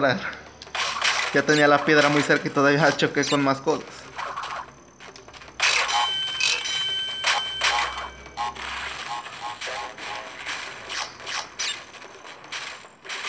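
Upbeat video game music plays.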